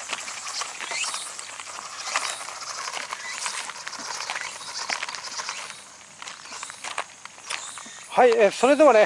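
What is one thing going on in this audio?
A small electric motor whirs and revs.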